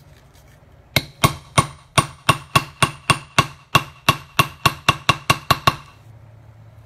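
A mallet taps quickly and repeatedly on a leather stamping tool.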